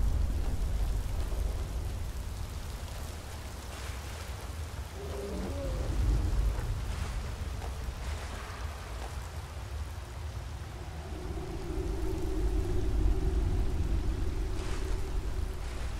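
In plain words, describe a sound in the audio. A stream of water rushes and splashes nearby.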